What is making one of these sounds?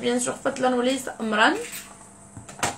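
A young woman speaks close to the microphone with lively intonation.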